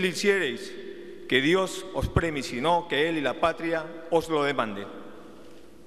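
A man speaks formally through a microphone.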